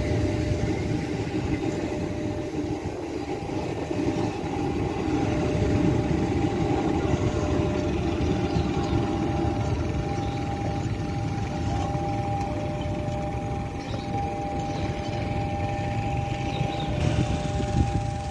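An electric train rumbles steadily along the rails nearby.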